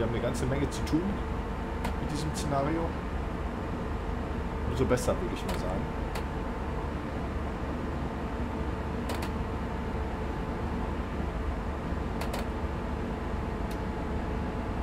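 Train wheels click over rail joints now and then.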